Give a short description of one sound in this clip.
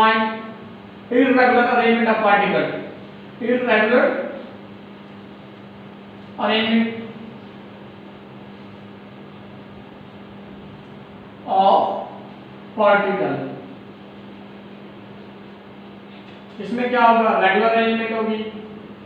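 A man speaks calmly in short bursts with pauses, close by.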